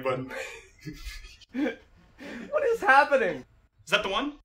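A young man laughs heartily close by.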